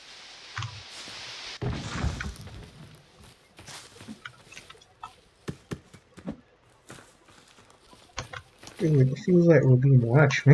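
Footsteps crunch through dry grass and undergrowth.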